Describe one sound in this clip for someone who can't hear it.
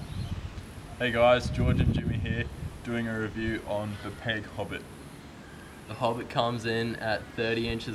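A teenage boy talks casually nearby.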